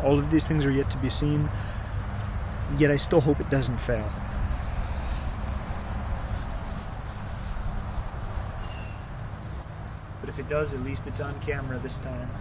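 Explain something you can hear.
A man talks close by, calmly explaining.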